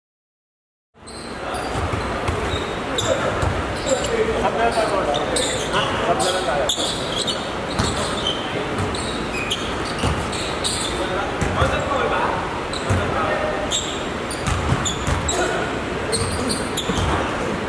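Basketball players call out to each other in a large echoing hall.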